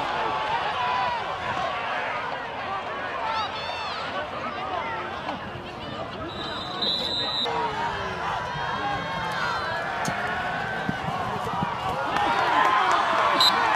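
A large crowd chatters and calls out in the open air.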